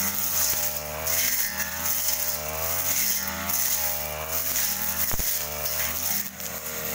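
A string trimmer engine whines steadily, rising and falling in pitch.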